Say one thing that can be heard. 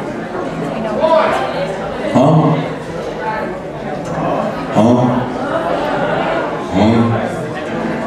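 A young man sings into a microphone.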